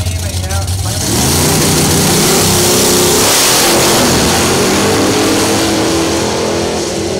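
Two drag racing engines roar to full throttle and scream away into the distance.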